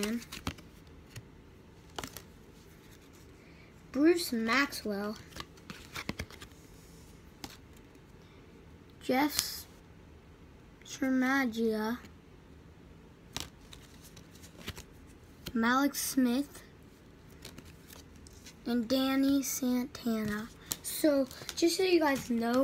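Cards shuffle and rustle in hands.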